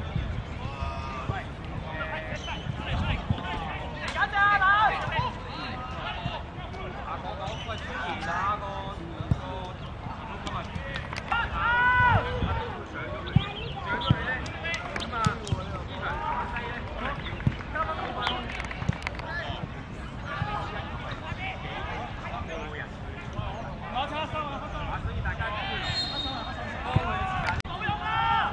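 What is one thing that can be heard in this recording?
Young men shout to each other outdoors.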